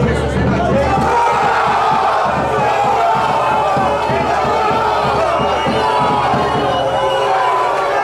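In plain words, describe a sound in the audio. Spectators clap their hands in rhythm.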